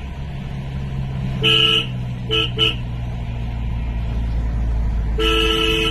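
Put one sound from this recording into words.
Truck engines rumble steadily nearby.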